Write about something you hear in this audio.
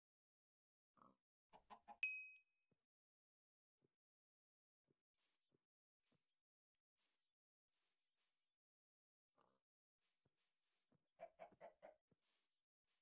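A chicken clucks nearby.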